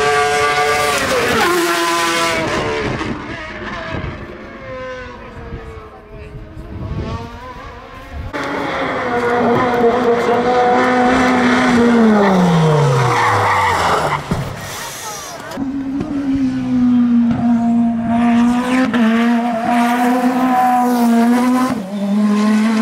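Racing car engines whine as they shift through gears.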